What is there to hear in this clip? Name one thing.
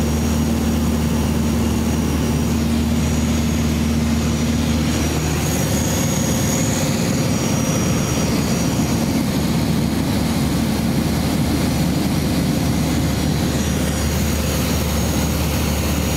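Wind rushes loudly past the plane.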